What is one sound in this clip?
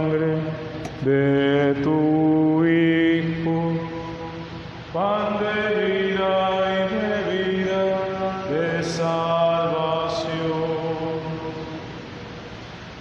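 A man chants in a sung voice through a microphone, echoing in a large hall.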